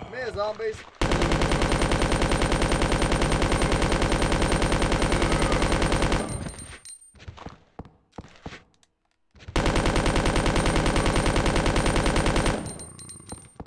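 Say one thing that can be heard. A gun fires in rapid, loud bursts.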